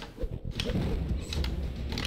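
A fighting game fireball whooshes.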